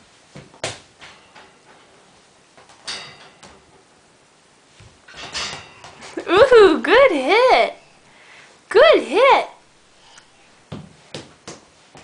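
A baby's hands and knees patter softly on a tiled floor.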